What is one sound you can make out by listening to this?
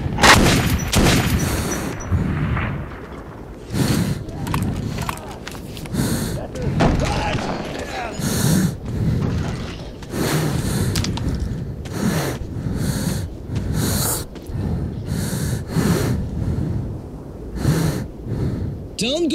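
Gunshots bang out again and again, with a short echo after each.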